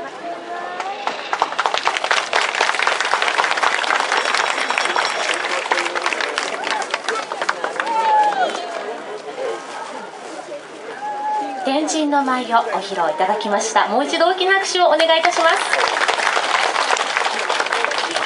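A crowd of adults and children chatter and call out nearby, outdoors.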